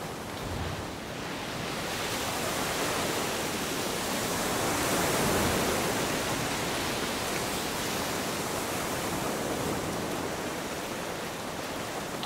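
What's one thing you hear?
A boat's wake churns and rushes through the sea.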